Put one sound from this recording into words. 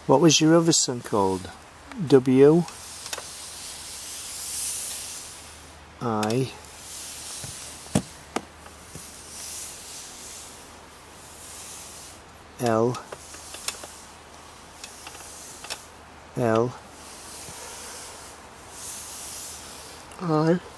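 A woman speaks calmly in short phrases close by.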